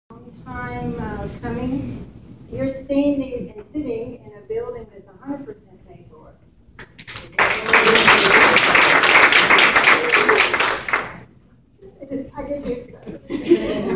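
A woman speaks calmly to a group.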